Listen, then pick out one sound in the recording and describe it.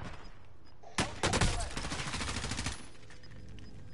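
A rifle fires a rapid burst of gunshots.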